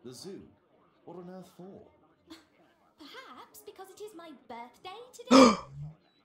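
A young girl speaks calmly.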